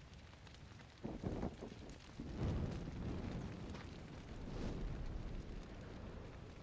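A fire bursts up with a rushing roar.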